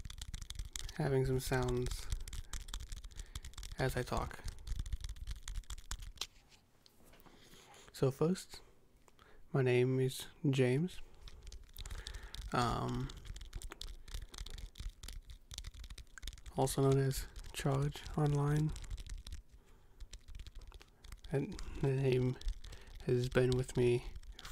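A young man speaks softly and closely into a microphone.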